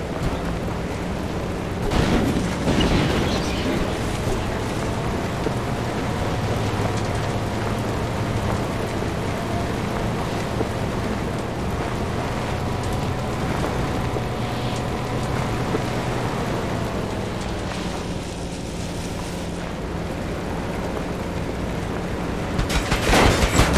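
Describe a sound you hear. A car engine hums steadily as the car drives over rough ground.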